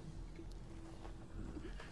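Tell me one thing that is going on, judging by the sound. A young woman sobs quietly close by.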